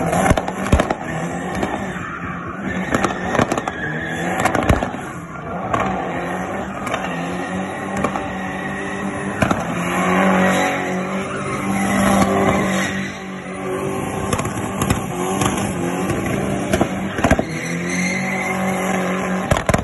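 A car engine revs hard at high rpm.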